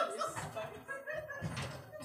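Men laugh nearby.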